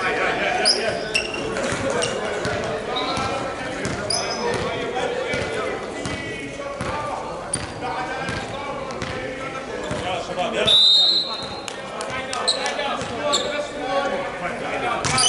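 Men call out and shout to each other across an echoing hall.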